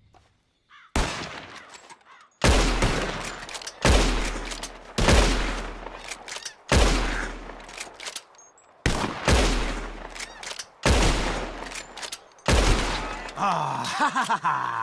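Rifle shots crack loudly one after another, each echoing away outdoors.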